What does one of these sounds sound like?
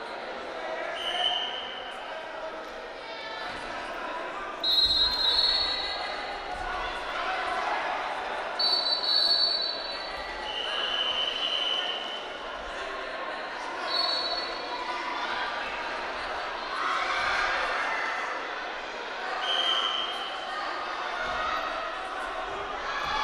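A crowd cheers and shouts throughout a large echoing hall.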